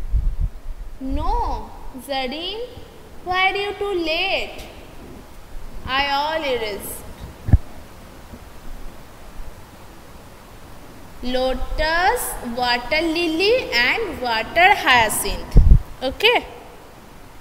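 A young woman speaks calmly and clearly, as if teaching a class.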